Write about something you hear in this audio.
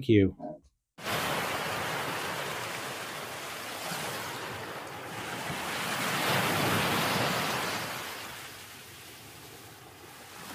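Ocean waves churn and wash steadily.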